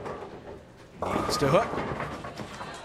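Bowling pins crash and clatter as the ball strikes them.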